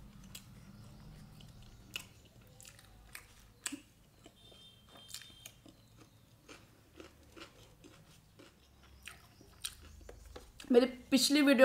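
A young woman chews and crunches food close to the microphone.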